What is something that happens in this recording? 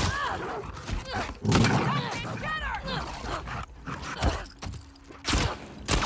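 Blows and thuds land in a close struggle.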